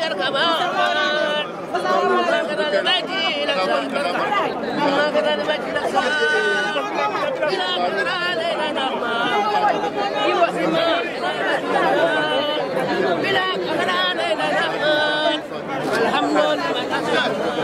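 A crowd of men and women talk and call out all around, close by.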